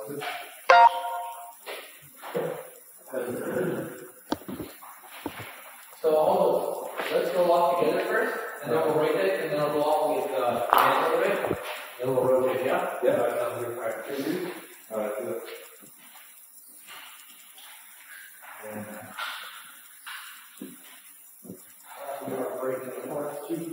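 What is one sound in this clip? A man talks with animation close by, his voice echoing in a tunnel.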